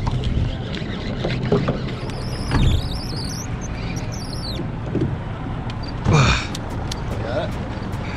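A fishing reel clicks and whirs as its handle turns.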